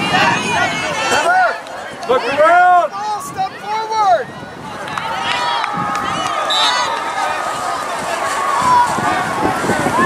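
Young players shout and call to each other across an open field, heard from a distance.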